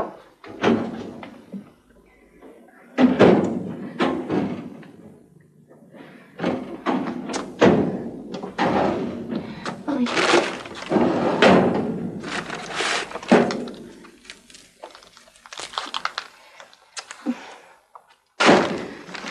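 Dishes and pans clink and clatter as they are handled.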